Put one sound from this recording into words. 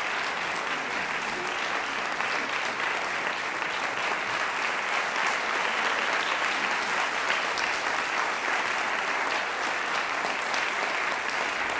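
A group of young children chatters and murmurs in a large echoing hall.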